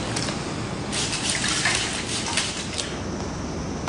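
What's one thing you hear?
A spray bottle hisses in short bursts.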